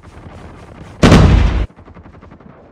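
A rifle fires a loud rapid burst.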